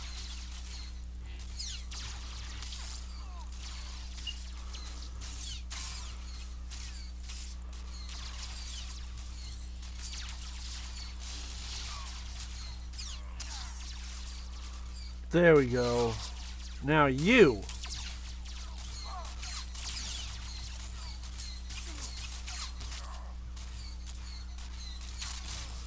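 Laser weapons zap and clash in a fight.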